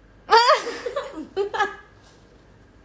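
Young women squeal and laugh excitedly close by.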